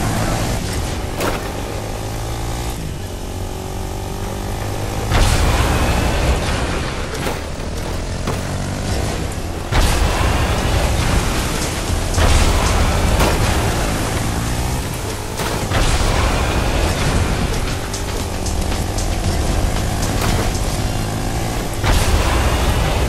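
Game vehicle engines rev and roar steadily.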